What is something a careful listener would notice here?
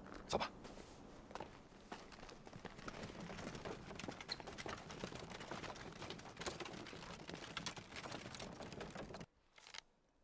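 Horse hooves clop on the ground.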